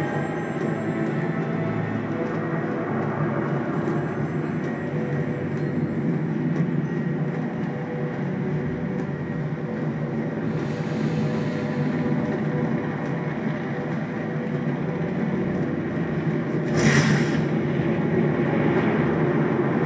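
Dense, rumbling action game sounds play steadily from a television speaker.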